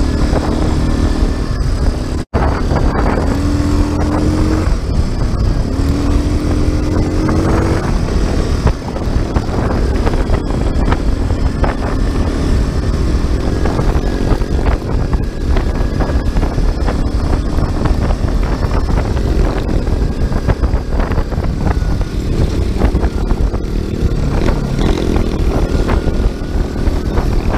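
A quad bike engine roars up close as it drives along a dirt track.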